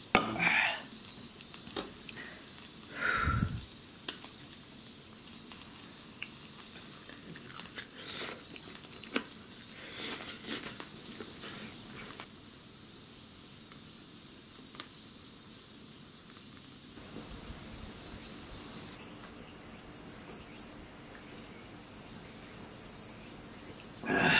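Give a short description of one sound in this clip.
Meat sizzles softly on a small electric grill.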